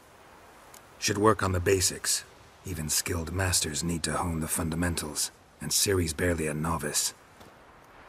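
A man answers in a low, gruff voice.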